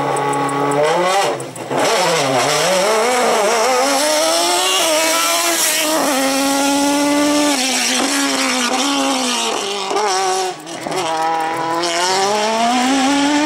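A race car engine revs hard and roars, climbing and dropping in pitch through gear changes.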